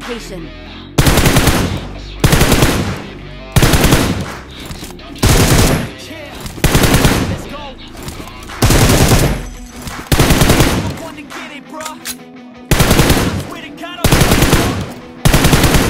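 Automatic rifle fire rattles in loud, repeated bursts.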